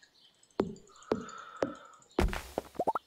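Short plucky pickup blips sound from a video game in quick succession.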